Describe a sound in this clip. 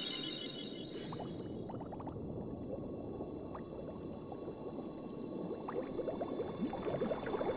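Underwater bubbles gurgle and pop, growing busier toward the end.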